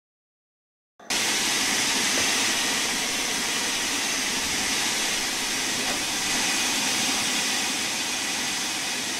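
Steam hisses steadily from a locomotive.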